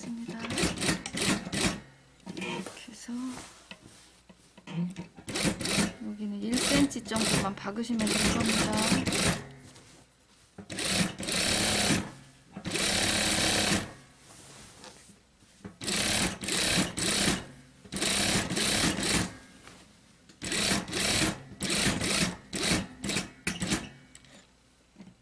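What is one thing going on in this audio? A sewing machine whirs as it stitches.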